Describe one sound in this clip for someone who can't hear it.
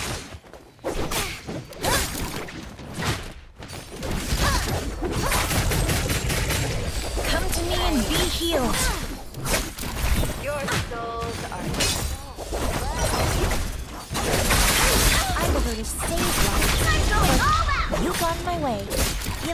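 Magic blasts and impacts burst repeatedly.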